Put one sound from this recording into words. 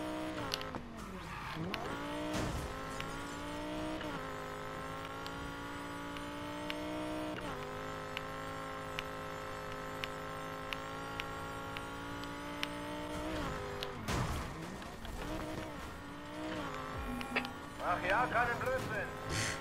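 Tyres screech as a car slides through a bend.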